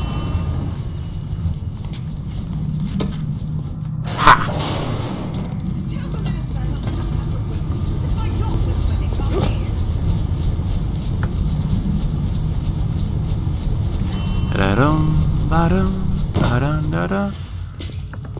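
A lift hums and rumbles steadily as it rides.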